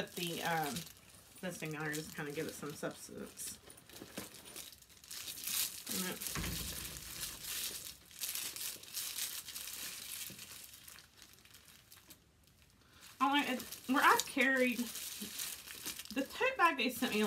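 A woven bag rustles as it is handled.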